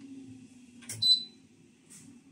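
A washing machine beeps briefly as a button is pressed.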